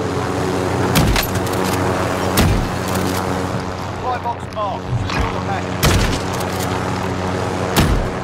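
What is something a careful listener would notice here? Gunshots crack loudly, a few seconds apart.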